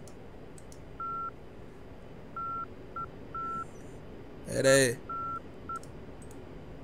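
A warning tone beeps in short bursts.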